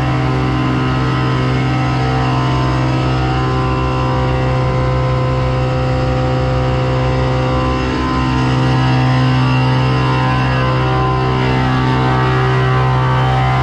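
A truck engine idles with a steady low rumble close by.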